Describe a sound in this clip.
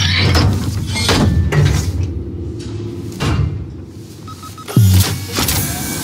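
A heavy metal door lever clunks and the door mechanism grinds open.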